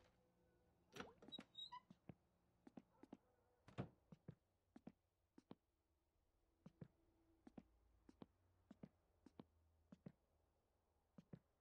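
Footsteps knock on a wooden floor at a slow walking pace.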